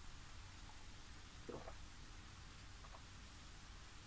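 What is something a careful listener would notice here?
An elderly man gulps a drink.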